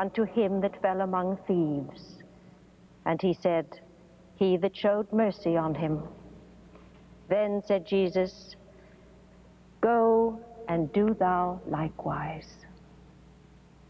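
A middle-aged woman speaks slowly and solemnly, close to a microphone.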